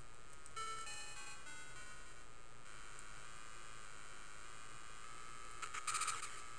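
Bright electronic game music with beeping tones plays steadily.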